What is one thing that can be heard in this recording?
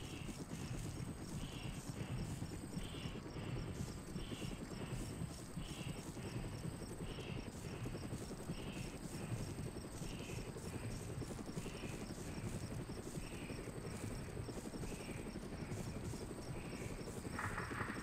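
Footsteps crunch steadily through grass at a walking pace.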